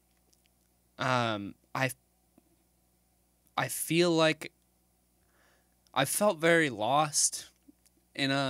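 A young man speaks close to a microphone in short, hesitant bursts with pauses between them.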